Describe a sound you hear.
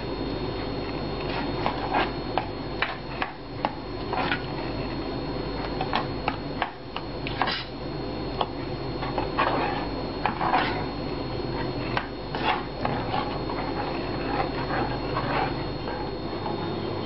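A spoon scrapes and knocks against a metal pot while stirring thick rice.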